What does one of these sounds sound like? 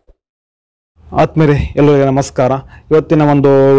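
A man speaks in a lively voice.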